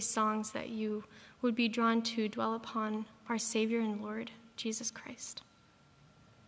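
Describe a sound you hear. A young woman speaks calmly into a microphone in a large hall.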